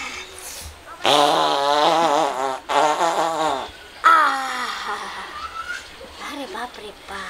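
A woman wails loudly, crying out in a singing voice.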